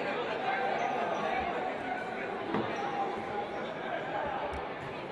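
A crowd murmurs and cheers in a large echoing sports hall.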